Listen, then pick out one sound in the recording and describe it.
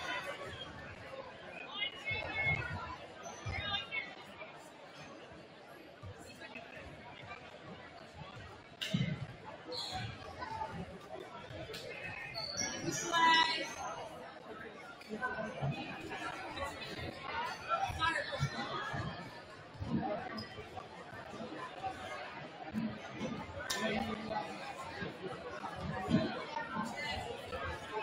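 Basketballs bounce on a wooden floor.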